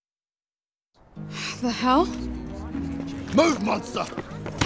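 A man shouts a gruff command.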